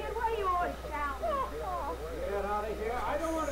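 A young man shouts angrily.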